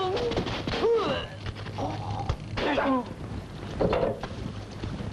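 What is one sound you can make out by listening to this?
A man cries out in pain.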